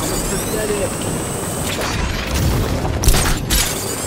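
A grapple line fires with a sharp zip.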